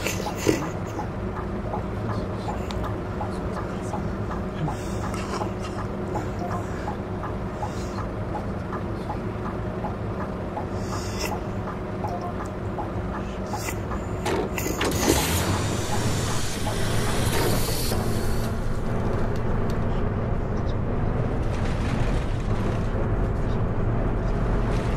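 A bus engine hums low and steadily.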